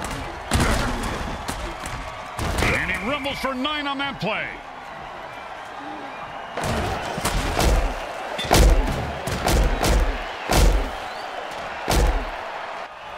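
Heavy thuds of armoured players crashing together.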